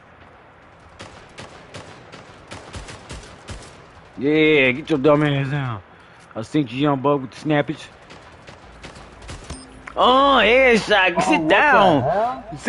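Rapid gunfire crackles from a game.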